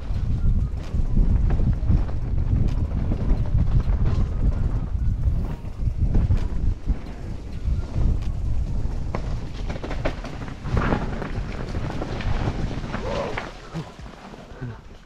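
Wind buffets the microphone as the rider speeds downhill.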